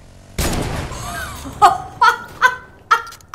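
A young woman shouts excitedly into a microphone.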